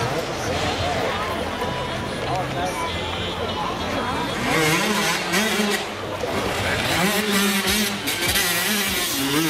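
A dirt bike engine revs and sputters up close.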